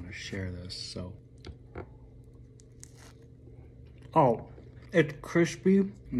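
A man bites into a crunchy pastry.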